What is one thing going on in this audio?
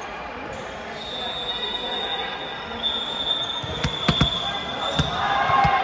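Sneakers squeak on a hard court floor in a large echoing hall.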